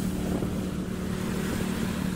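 Waves from a boat's wake wash onto the shore.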